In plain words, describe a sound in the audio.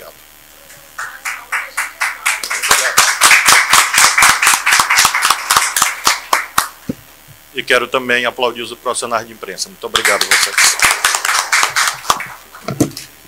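A group of people clap their hands in applause.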